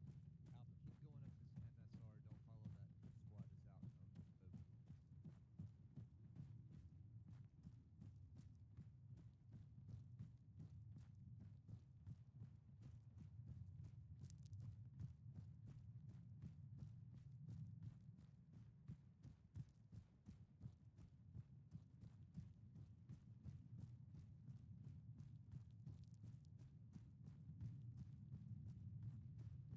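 A low steady rumble of wind blows outdoors.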